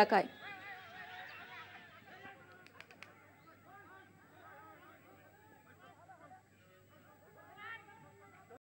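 A crowd of men talk and shout excitedly outdoors, a little way off.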